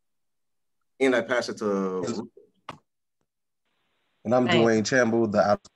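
An adult speaks calmly over an online call.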